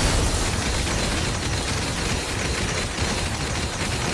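Lightning bolts crackle and strike the ground.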